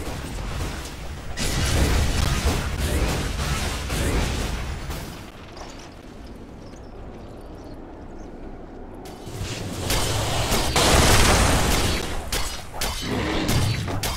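Weapons clash and strike in quick bursts.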